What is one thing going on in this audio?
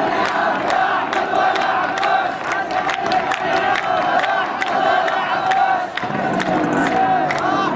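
A large crowd of men chants in unison outdoors.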